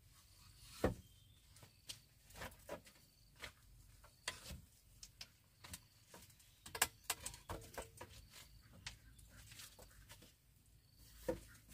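Bamboo poles knock and clatter against each other.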